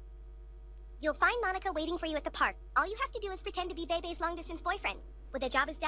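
A young boy speaks with animation.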